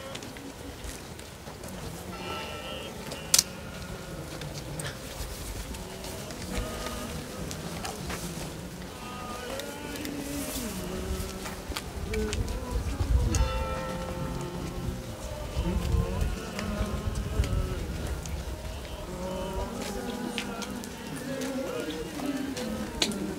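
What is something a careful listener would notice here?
A crowd of men and women sing slowly together outdoors.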